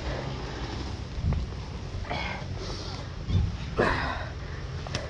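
A dirt bike knocks and thuds over rough ground.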